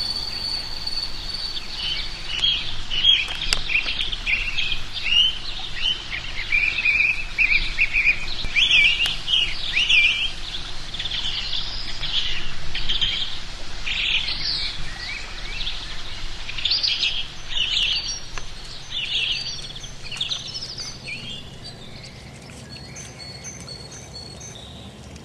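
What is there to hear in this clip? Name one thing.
A deer crops grass close by.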